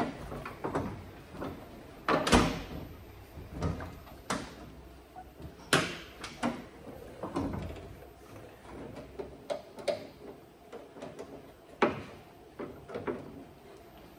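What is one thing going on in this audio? A man knocks and taps on a metal car panel.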